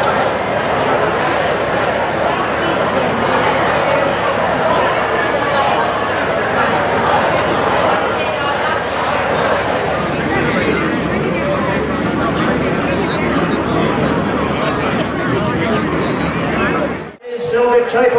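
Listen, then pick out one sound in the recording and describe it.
A crowd chatters under a large tent.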